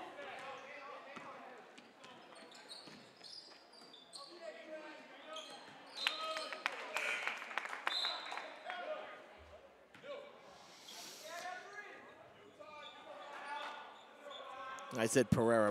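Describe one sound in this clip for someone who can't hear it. Players and spectators call out in a large echoing gym.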